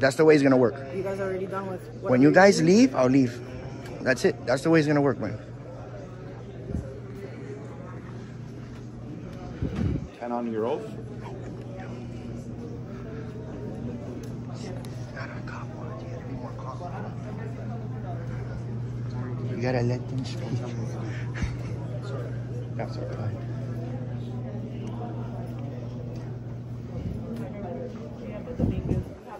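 Voices murmur faintly in a room with a steady hum.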